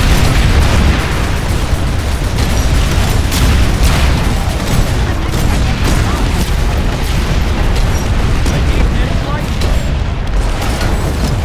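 Gunfire and explosions crack and boom repeatedly.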